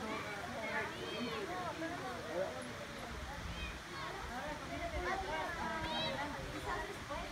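Children chatter and shout excitedly outdoors.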